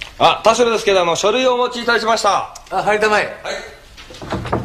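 A middle-aged man shouts a reply with animation.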